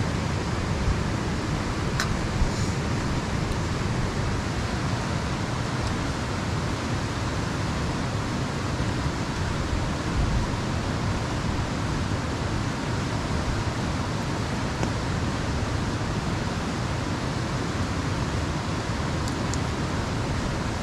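Spoons scrape against metal plates.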